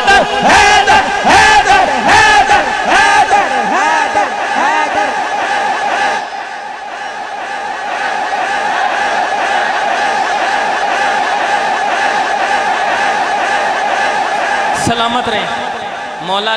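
A young man chants melodically into a microphone over loudspeakers in an echoing hall.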